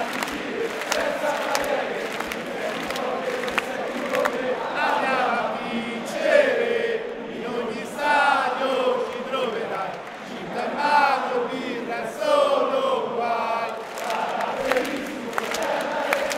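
A large crowd of fans sings a chant together loudly in a huge open stadium.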